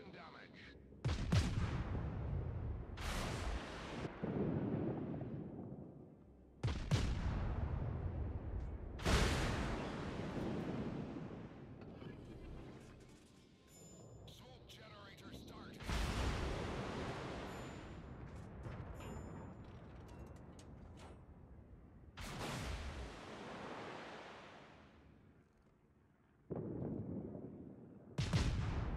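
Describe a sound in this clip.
Heavy naval guns fire in loud booming salvos that rumble away.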